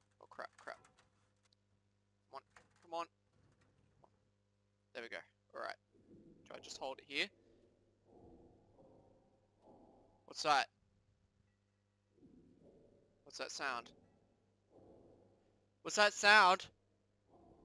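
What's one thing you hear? A young man talks casually into a close headset microphone.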